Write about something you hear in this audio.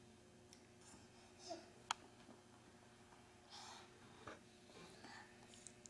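A small child whines and fusses quietly nearby.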